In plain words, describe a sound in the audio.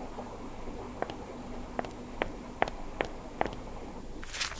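Footsteps click on a hard floor in a large echoing space.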